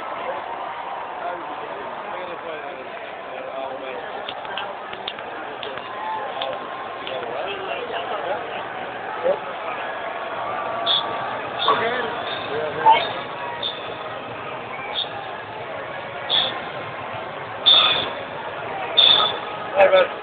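A large stadium crowd roars and cheers outdoors.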